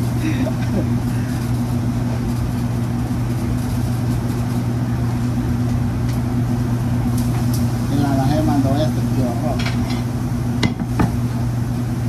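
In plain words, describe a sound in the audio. Dough slaps against a counter.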